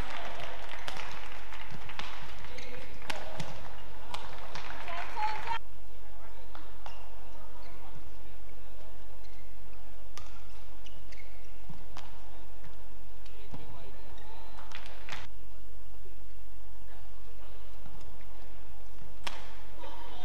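A racket strikes a shuttlecock with sharp pops.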